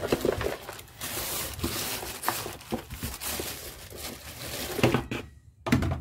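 Soil pours and patters into a plastic pot.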